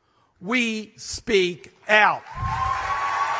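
An elderly man speaks emphatically through a microphone in a large hall.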